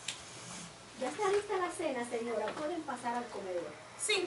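A woman speaks clearly and with expression nearby.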